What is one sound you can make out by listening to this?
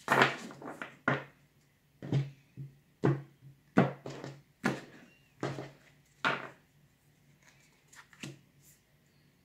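Cards are laid down on a wooden table with soft taps.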